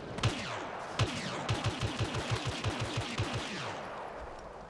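Laser blasters fire in a rapid burst of shots.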